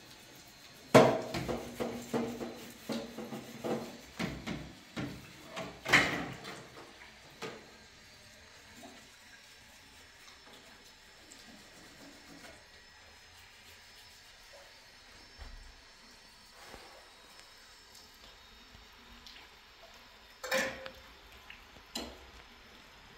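Dishes clatter and clink in a metal sink.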